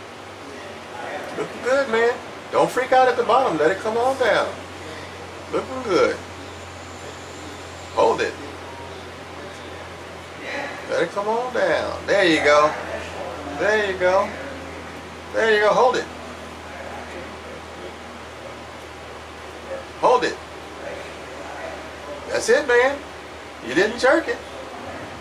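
A man speaks calmly nearby, in short bursts.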